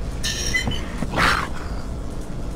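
A creature screeches.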